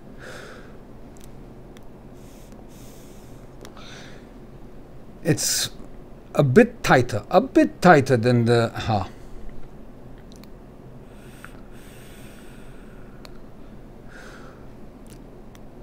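A man blows out a long breath.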